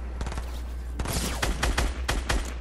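A rifle fires in quick bursts of shots.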